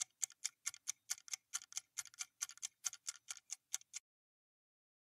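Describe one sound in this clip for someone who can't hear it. A countdown timer ticks quickly and steadily.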